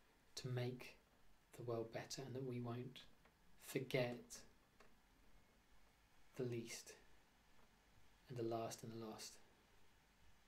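A man speaks calmly and close by, in short phrases with pauses.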